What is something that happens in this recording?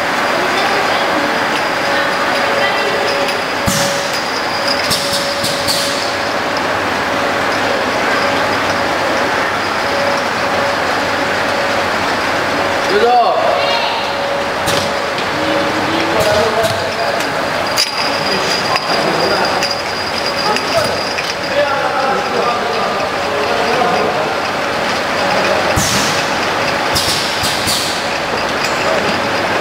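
Glass jars clink against each other on a conveyor.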